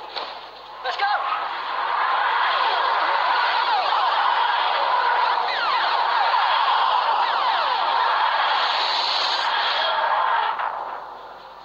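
A loud, steady whooshing roar swells and then cuts off.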